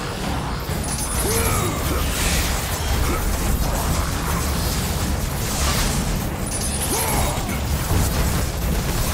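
Heavy blows thud against enemies.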